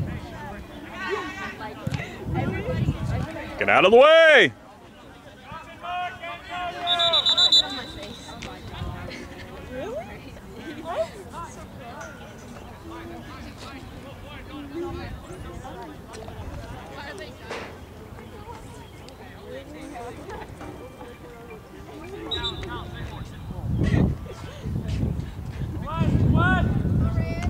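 Young players shout to each other in the distance across an open field.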